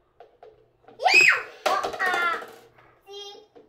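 A young girl squeals and shouts excitedly nearby.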